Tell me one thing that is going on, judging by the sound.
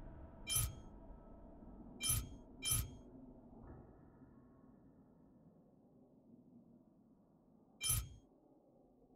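Short bright interface chimes click now and then.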